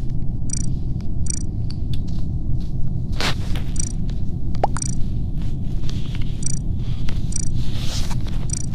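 Short electronic blips sound as menu options are picked.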